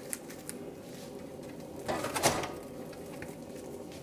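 Meat slides and thuds into a metal pot.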